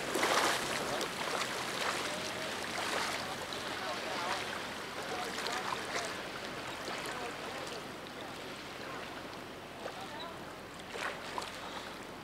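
A man swims, splashing gently in the water.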